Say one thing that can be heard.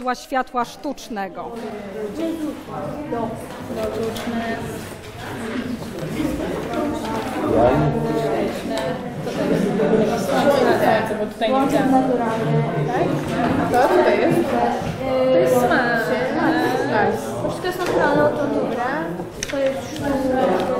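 Teenage boys and girls chatter and talk over one another close by.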